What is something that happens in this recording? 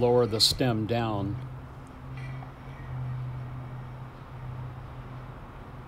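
Metal parts clink softly.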